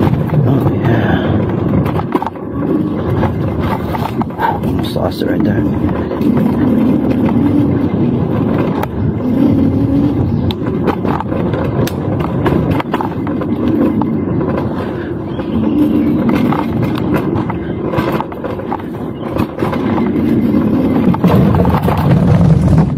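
Tyres clatter over wooden bridge planks.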